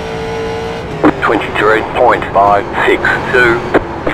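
Tyres squeal loudly as a race car slides through a turn.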